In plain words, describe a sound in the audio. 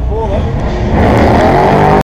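A racing car engine roars loudly as the car launches.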